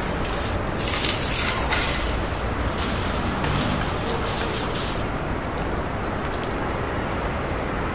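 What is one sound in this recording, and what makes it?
A padlock rattles against a chain-link fence.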